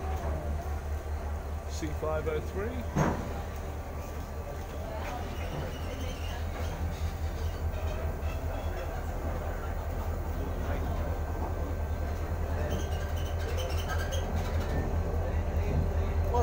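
Heavy train wheels roll and clatter slowly along rails.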